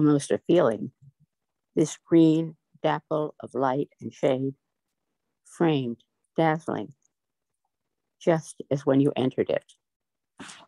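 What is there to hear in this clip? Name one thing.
An elderly woman speaks calmly and close to the microphone, in short bursts with pauses.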